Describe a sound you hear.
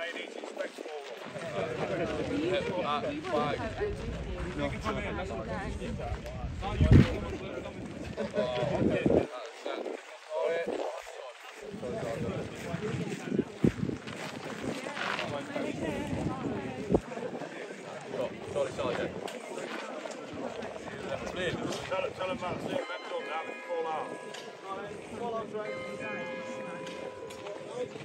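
A man speaks calmly to a group outdoors.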